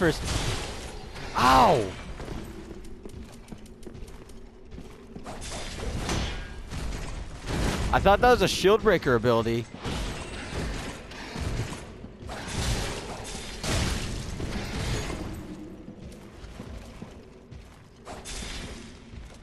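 Heavy armoured footsteps thud on stone.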